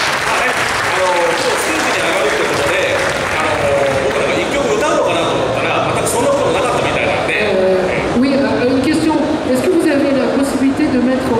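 A second man speaks with animation through a microphone over loudspeakers.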